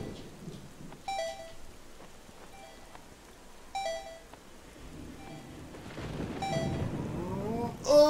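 Bright magical chimes tinkle repeatedly.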